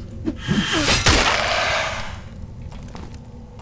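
A skeleton shatters with a burst of crackling.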